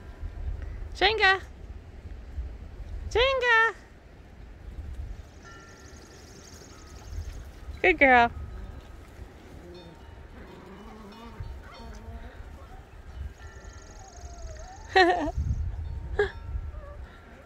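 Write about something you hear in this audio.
Puppies yelp and whine while playing.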